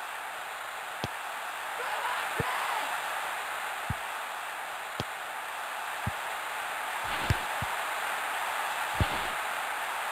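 A football is kicked with sharp, dull thuds now and then.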